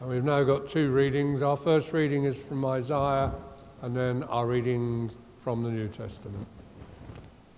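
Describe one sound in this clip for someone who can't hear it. An elderly man speaks calmly through a microphone in a reverberant hall.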